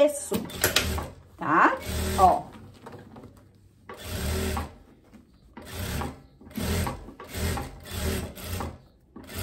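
A sewing machine stitches in short, quick bursts.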